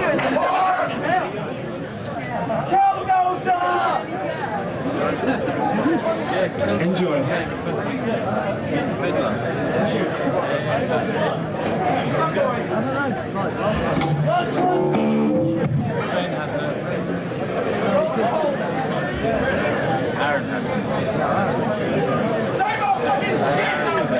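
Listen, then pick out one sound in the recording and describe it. A band plays loud live music in an echoing hall.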